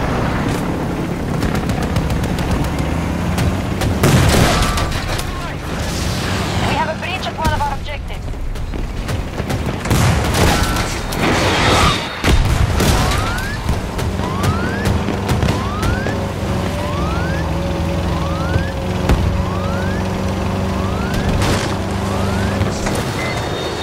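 Gunfire cracks in bursts.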